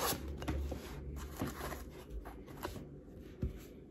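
A box slides and scrapes across a hard table.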